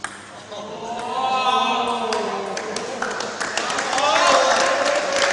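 A group of men cheer and laugh loudly.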